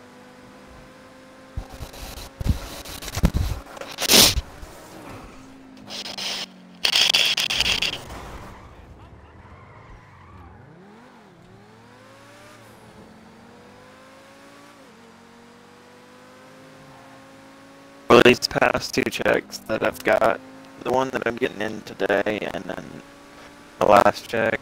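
A sports car engine hums and revs up and down.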